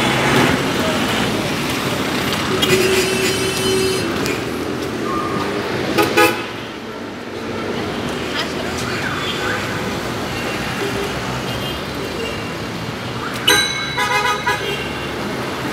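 Steady city traffic rumbles along a busy street outdoors.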